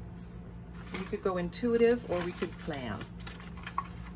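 Paper rustles and crinkles as sheets are shuffled.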